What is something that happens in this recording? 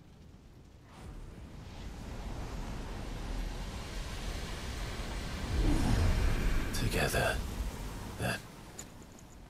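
A magical shimmer swells and hums.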